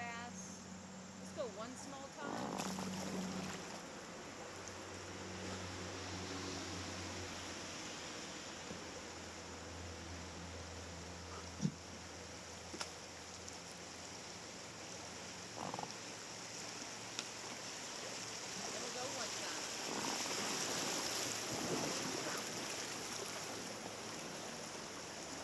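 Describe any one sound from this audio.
River water flows and splashes around a raft outdoors.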